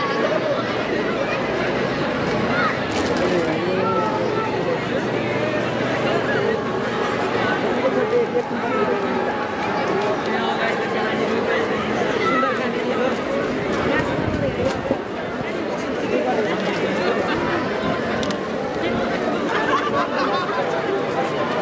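A large outdoor crowd of men and women chatters and shouts all around.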